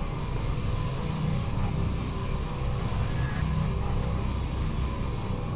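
A deep mechanical hum drones steadily.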